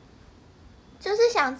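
A young woman speaks briefly and close by, in a high, animated voice.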